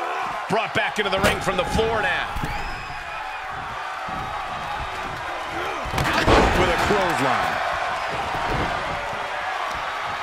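Wrestlers' bodies thud onto the ring mat.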